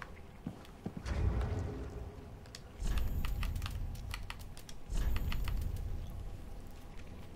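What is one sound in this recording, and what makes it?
Game menu sounds thud softly as menus open and change.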